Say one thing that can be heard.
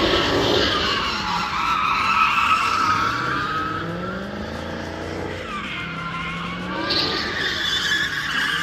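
A car engine roars and revs as the car drifts in circles.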